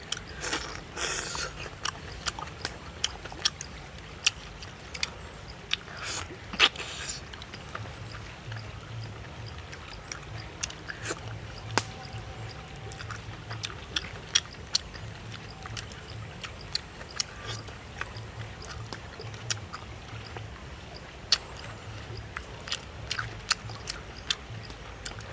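A man chews and slurps food noisily up close.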